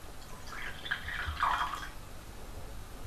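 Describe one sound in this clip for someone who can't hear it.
Liquid pours and splashes into a glass.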